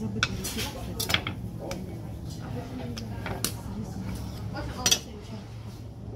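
A knife cuts on a plastic cutting board with light taps.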